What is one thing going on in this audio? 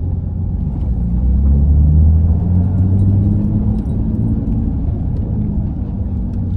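A car engine revs up and its pitch rises as the car speeds up.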